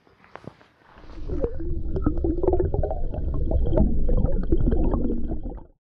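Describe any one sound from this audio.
Water bubbles and gurgles as if heard from underwater.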